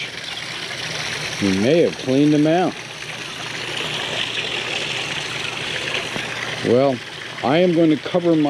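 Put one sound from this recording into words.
Water splashes and gurgles steadily into a pond outdoors.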